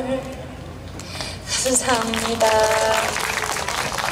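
A young woman speaks through a microphone over loudspeakers.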